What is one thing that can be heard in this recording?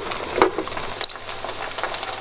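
A digital kitchen timer beeps.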